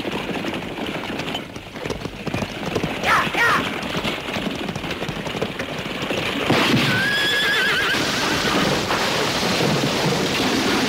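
Horses' hooves pound on dirt.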